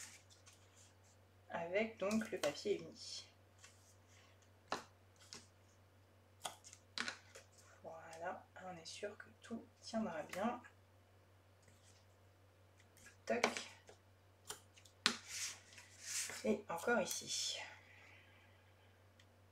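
Adhesive tape peels and rips off a roll.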